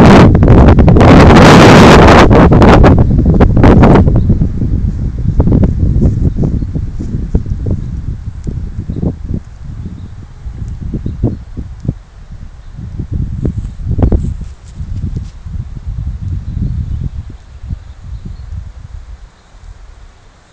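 Wind gusts and rumbles outdoors, loud at first and then easing.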